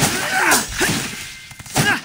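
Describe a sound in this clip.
A sword swishes through the air with a sharp whoosh.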